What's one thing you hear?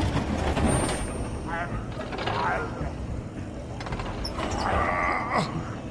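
Metal doors scrape as they are forced apart.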